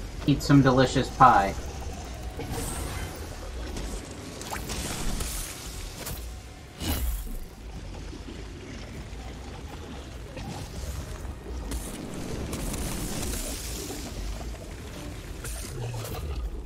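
A blade swings and strikes with a sharp clang.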